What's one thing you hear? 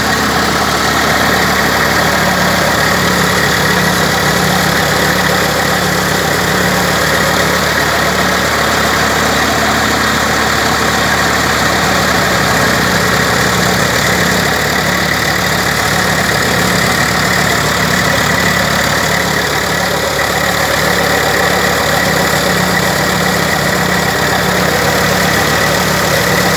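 A tractor-driven straw chopper roars loudly and steadily.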